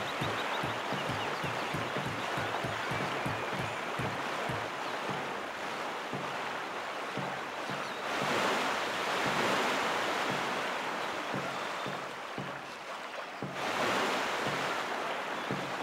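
Paddle strokes thump in a quick, even rhythm.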